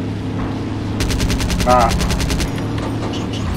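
Machine guns fire in a rapid burst.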